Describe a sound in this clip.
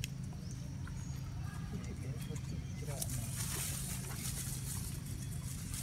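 Dry leaves rustle as a monkey shifts on the ground.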